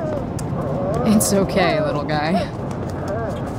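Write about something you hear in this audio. A puppy whimpers softly.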